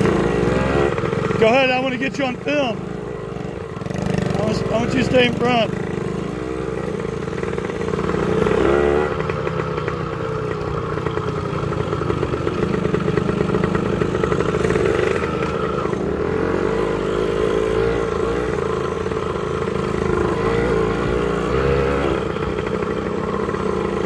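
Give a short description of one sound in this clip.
A motorcycle engine putters and revs nearby.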